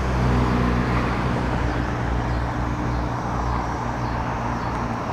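Wind rumbles and buffets steadily against the microphone outdoors.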